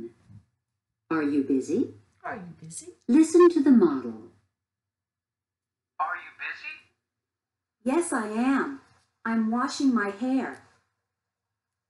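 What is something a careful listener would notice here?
A middle-aged woman speaks clearly and slowly close to a microphone.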